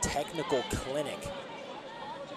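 A man shouts loudly from nearby.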